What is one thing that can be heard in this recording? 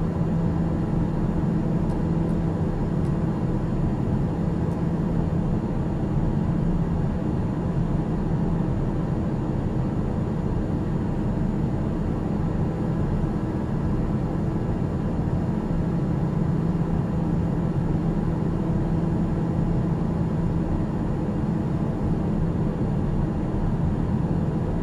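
A single-engine turboprop drones steadily at cruise, heard from inside the cabin.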